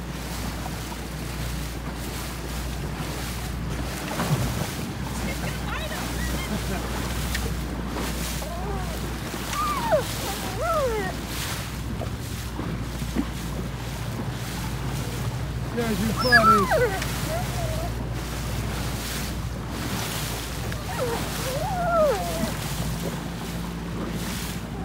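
Water rushes steadily past a moving boat's hull.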